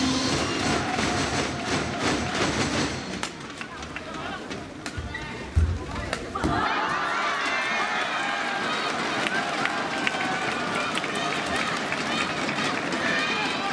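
A large crowd cheers and chatters in a big echoing hall.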